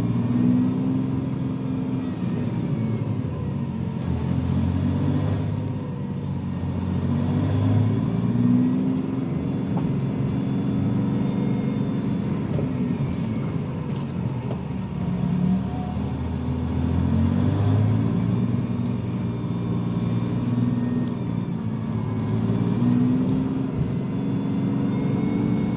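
A bus engine rumbles low and steady from inside the cabin.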